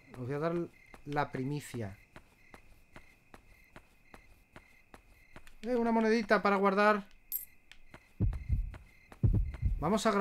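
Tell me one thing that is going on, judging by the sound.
Footsteps tap at a steady pace.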